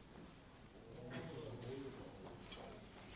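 A man speaks faintly at a distance.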